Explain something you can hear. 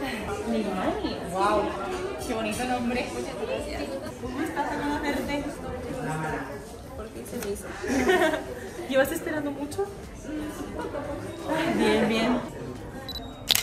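Two young women talk and laugh with animation close by.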